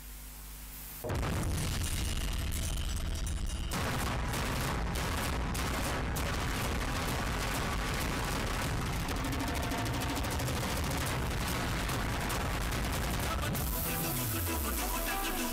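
Loud dance music plays through loudspeakers.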